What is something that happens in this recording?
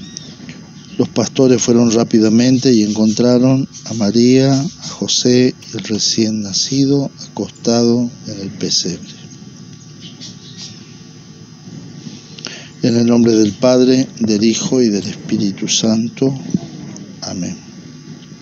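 A man speaks calmly and solemnly into a nearby microphone.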